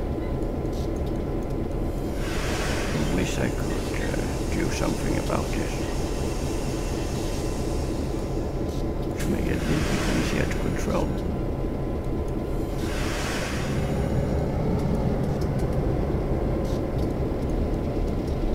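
A diesel locomotive engine rumbles steadily as the train rolls along the track.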